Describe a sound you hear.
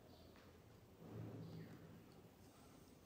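An elderly man yawns loudly.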